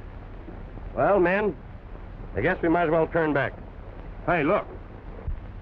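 A man speaks loudly outdoors.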